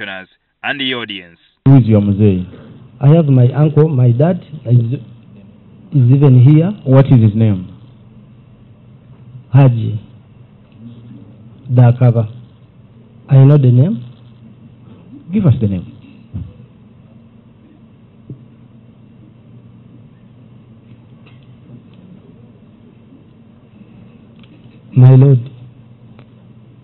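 An elderly man speaks slowly and deliberately into a microphone, with long pauses.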